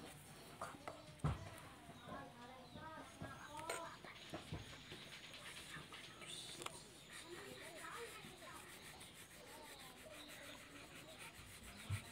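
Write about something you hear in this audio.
Crayons scratch softly on paper.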